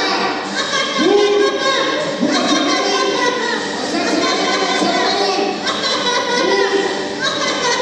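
A man cries out with emotion in a large echoing hall.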